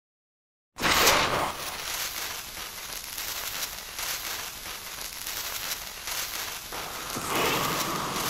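A sparkler fizzes and crackles close by.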